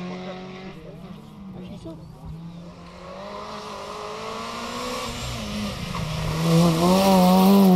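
A second rally car engine approaches, revving loudly, and roars past.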